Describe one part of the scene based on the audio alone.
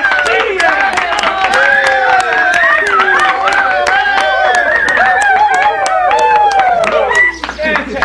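Hands clap quickly and steadily.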